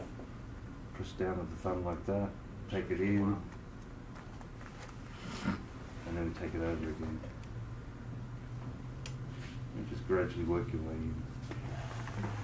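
An adult man talks calmly close by, in short bursts.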